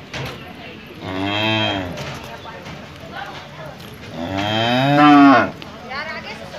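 A cow moos loudly and close by, in long drawn-out calls.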